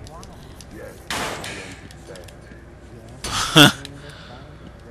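A metal grate clatters loudly as it is pulled down.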